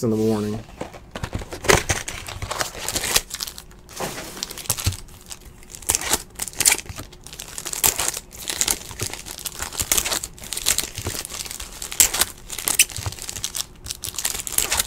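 Foil wrappers crinkle and tear as card packs are opened.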